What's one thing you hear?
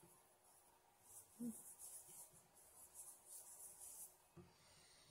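Hands rub softly against skin.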